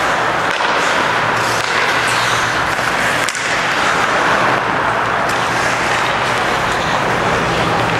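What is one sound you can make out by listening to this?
Ice skates scrape and glide across the ice.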